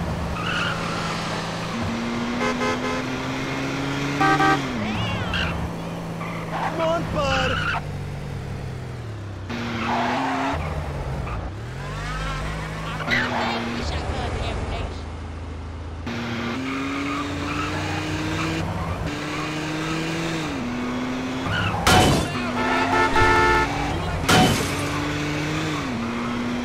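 A car engine hums and revs up and down as the car drives.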